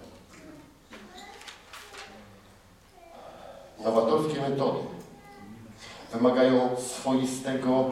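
A man speaks through a microphone in a large, echoing hall.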